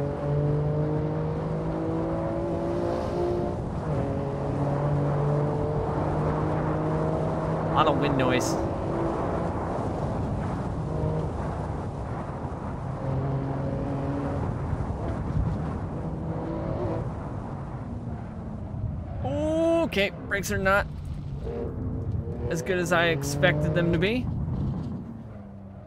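A car engine drones and shifts through the gears at speed.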